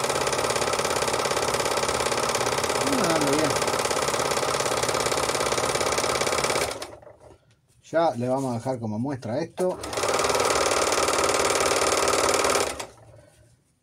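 A sewing machine whirs rapidly and steadily up close.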